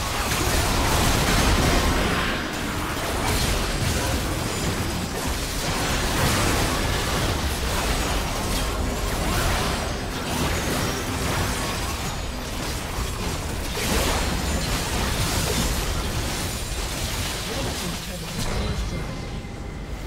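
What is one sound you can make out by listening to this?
Game spell effects and combat sounds clash and burst rapidly.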